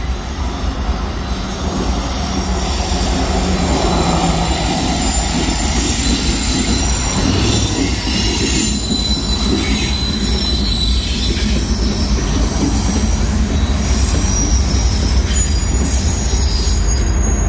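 Cars drive by on a road outdoors.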